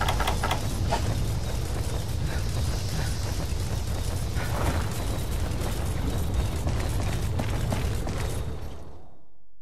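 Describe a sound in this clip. A deep rumble drones steadily.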